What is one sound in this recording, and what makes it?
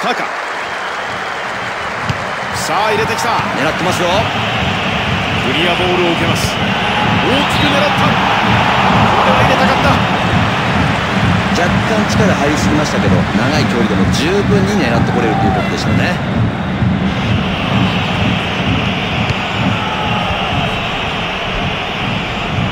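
A stadium crowd roars and cheers steadily.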